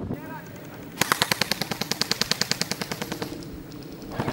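An airsoft gun fires a rapid burst of sharp clicks nearby.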